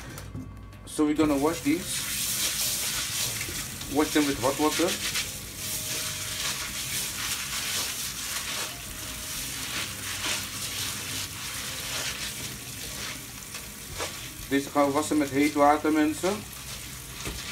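Water runs from a tap and splashes into a colander.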